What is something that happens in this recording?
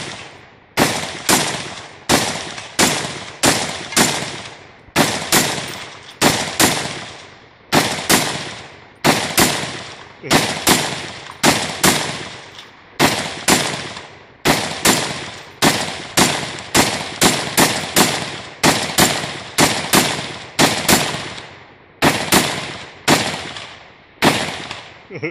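Two rifles fire loud shots in quick succession outdoors, each shot echoing away.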